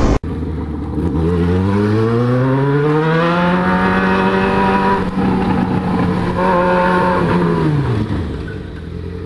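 A motorcycle engine revs up, holds a high whine, then drops off.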